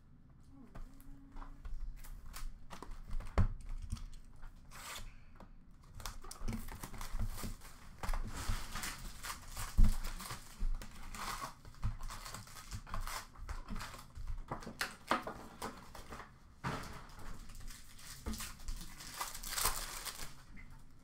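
Card packs and boxes clatter and knock nearby.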